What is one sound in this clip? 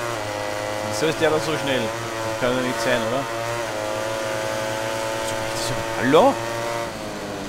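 Another motorcycle engine whines nearby as it is passed.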